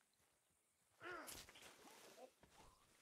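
A knife stabs into a body with a wet thud.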